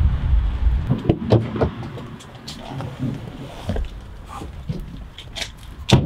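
Boots step on wet pavement nearby.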